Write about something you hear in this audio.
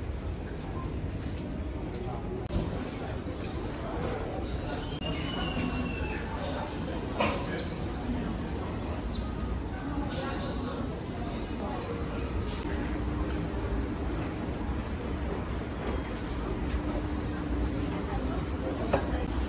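A crowd of shoppers murmurs in a large, echoing hall.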